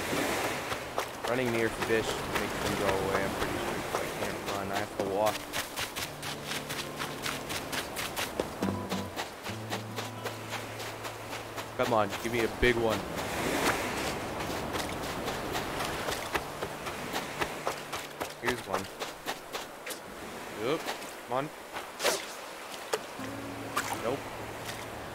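Quick footsteps patter across sand.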